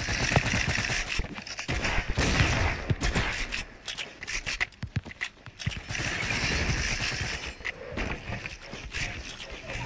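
Game footsteps thud on wooden floors.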